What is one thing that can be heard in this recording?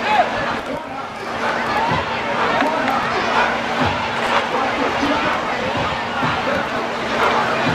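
A crowd of people chatter and call out at a distance outdoors.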